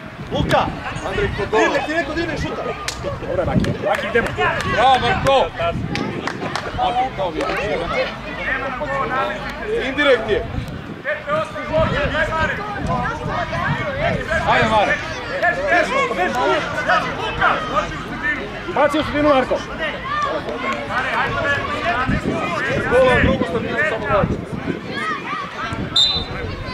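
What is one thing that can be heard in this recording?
A crowd of children and adults talks and shouts outdoors.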